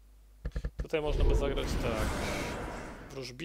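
Magical spell effects whoosh and shimmer in a video game.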